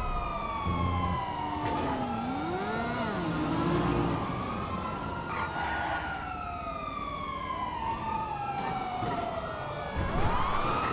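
A sports car engine revs high and whines, rising and falling in pitch.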